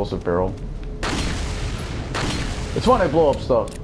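An explosion booms and then hisses away.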